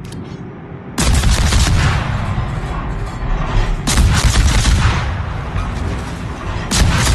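Heavy naval guns boom in repeated volleys.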